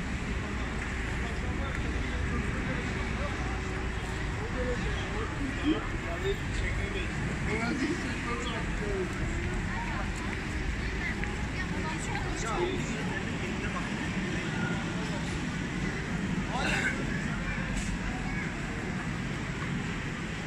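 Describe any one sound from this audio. A crowd of people chatters in a busy street outdoors.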